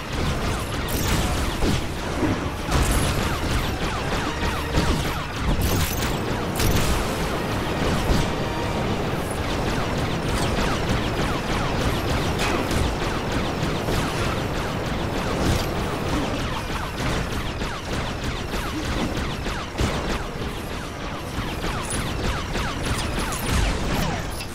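Laser blasts fire rapidly and zap again and again.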